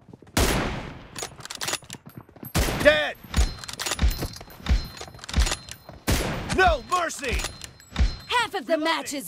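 Gunshots fire in short bursts and echo away.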